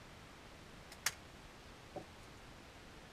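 A rifle bolt clacks open and shut.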